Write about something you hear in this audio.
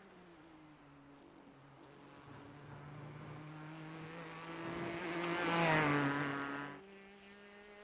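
A race car engine roars, growing louder as the car approaches and passes close by.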